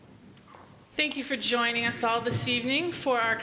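A woman sings solo through a microphone.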